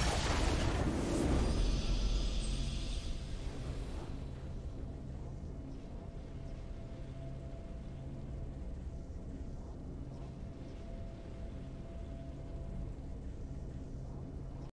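A triumphant fanfare plays softly.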